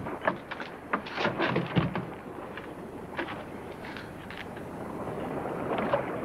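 A wooden barrel lid knocks and scrapes.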